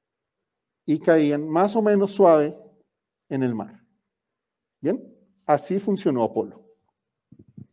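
A man speaks calmly to an audience through a microphone.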